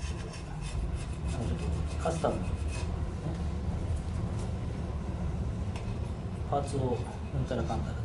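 Metal parts clink and tap lightly.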